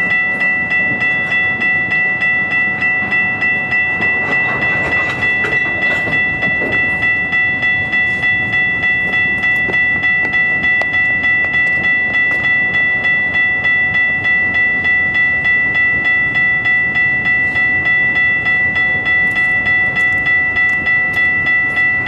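Diesel locomotives rumble as a freight train rolls slowly past.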